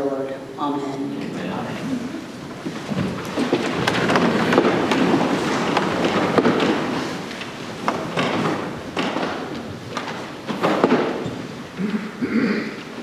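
People shuffle and murmur as they move about in a large echoing hall.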